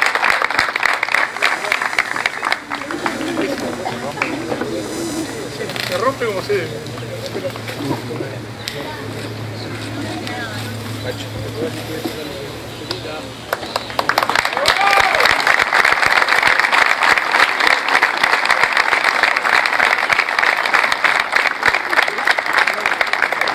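A crowd claps and applauds.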